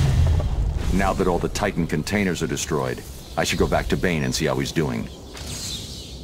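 A man speaks in a deep, low voice.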